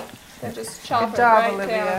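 A knife cuts through a vegetable.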